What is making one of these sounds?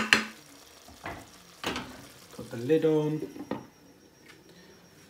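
A glass lid clinks onto a pan.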